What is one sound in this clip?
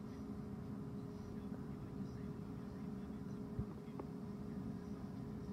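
A car engine idles with a low, steady hum, heard from inside the car.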